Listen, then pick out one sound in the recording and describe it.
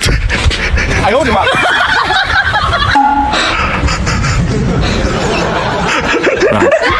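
A young woman speaks with exaggerated surprise close to a microphone.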